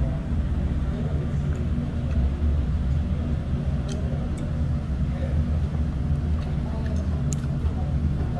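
Metal chopsticks click against a bowl.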